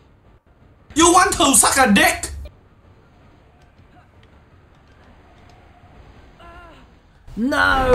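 A young man speaks excitedly into a microphone.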